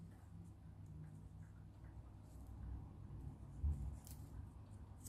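Paper rustles softly as it is rolled around a stick.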